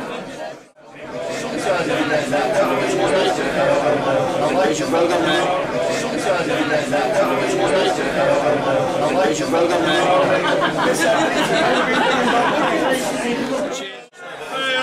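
A crowd of men chatter loudly in an echoing room.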